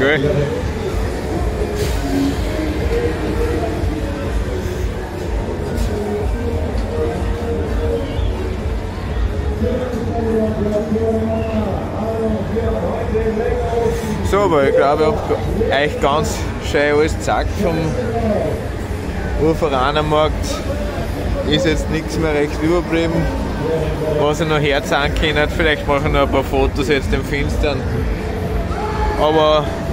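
Fairground rides rumble and hum steadily in the distance below.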